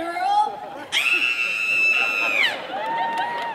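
A woman laughs loudly and shrieks into a microphone.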